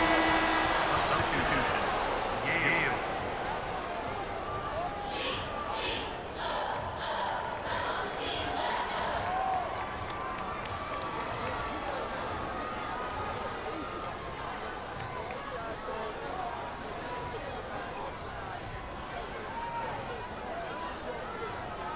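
A large crowd roars and cheers in a big echoing arena.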